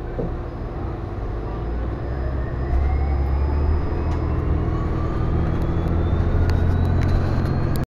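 A bus engine whines, rising in pitch as the bus speeds up.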